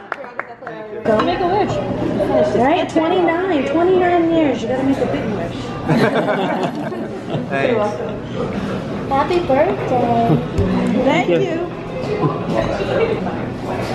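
Several adults chat and talk over each other nearby.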